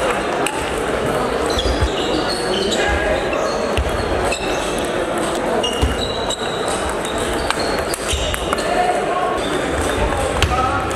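Sneakers squeak on a hall floor.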